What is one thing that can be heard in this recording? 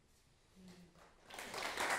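A piano plays a soft note.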